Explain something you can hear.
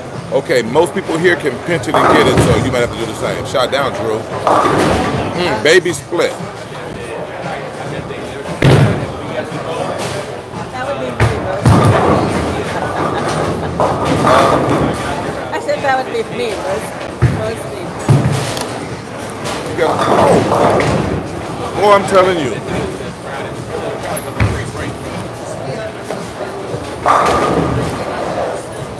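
Bowling pins crash and clatter.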